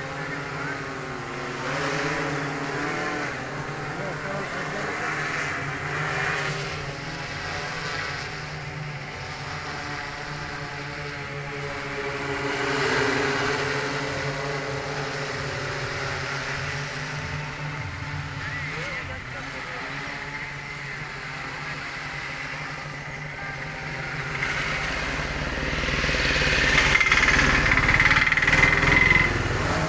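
A drone's rotors buzz steadily overhead.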